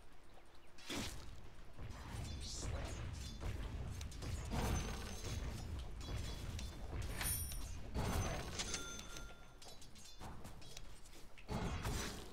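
Game spells and weapons clash and burst in a busy fight.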